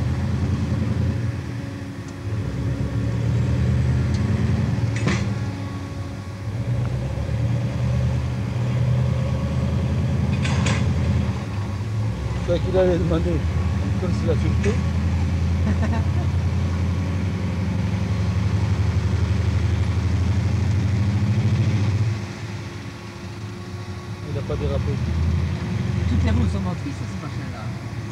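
A large truck engine rumbles low and steady close by.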